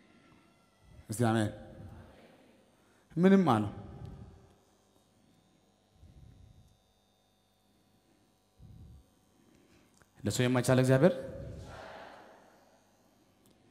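A man preaches loudly and with animation into a microphone in a large echoing hall, in short bursts with pauses.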